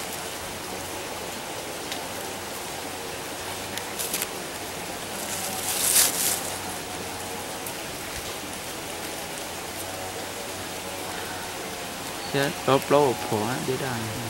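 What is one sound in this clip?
Hands peel and snap a plant stem with soft crackles.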